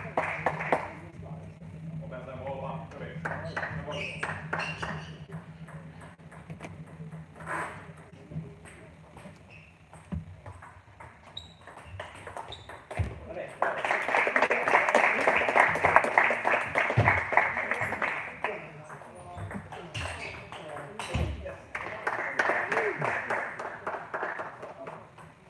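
A ping-pong ball clicks back and forth on paddles and a table in an echoing hall.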